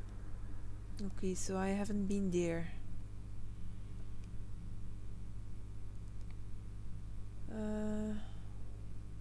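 A young woman speaks briefly and calmly through a microphone.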